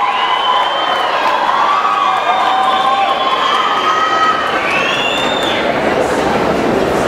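A man makes gliding vocal sounds into a microphone, heard through loudspeakers in a large hall.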